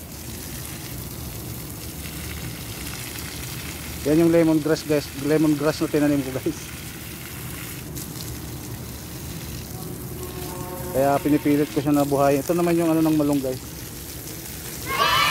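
A hose sprays water onto soil with a steady hiss.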